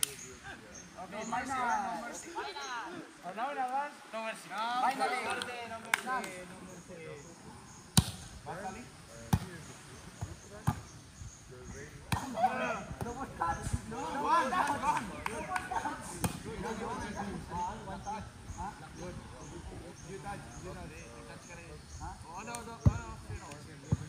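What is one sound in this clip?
Young men call out and shout to each other outdoors.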